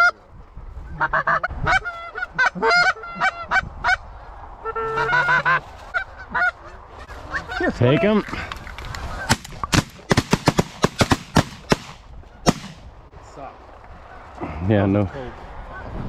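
A flock of geese honks loudly overhead.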